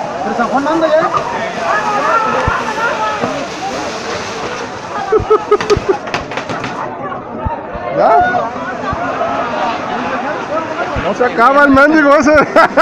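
A crowd shouts and screams with excitement.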